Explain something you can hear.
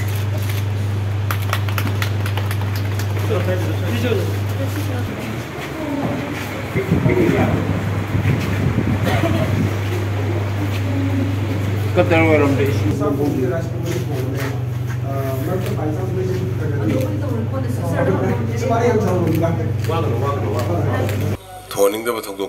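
People talk over one another in a crowd.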